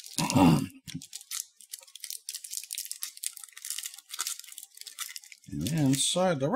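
Small crinkling and rustling sounds come from something handled in a man's fingers.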